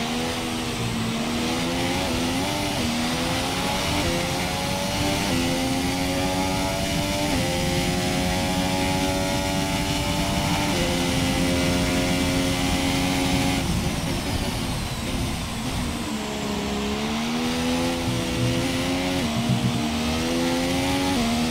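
A racing car engine screams, rising in pitch through the gears and dropping as it brakes.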